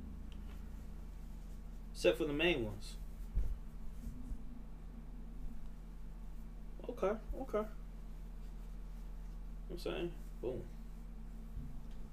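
Fabric rustles as a man handles a shirt.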